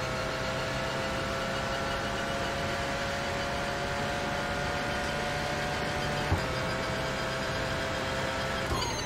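A racing car engine whines at high speed, holding a steady pitch.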